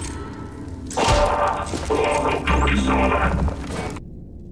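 A powerful energy blast crackles and roars.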